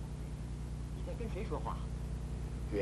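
A man speaks, asking a question, heard from a distance.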